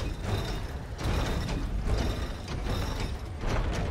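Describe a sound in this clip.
A heavy stone gear grinds as it turns.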